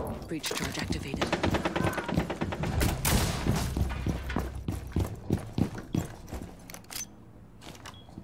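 Footsteps thud on a hard floor.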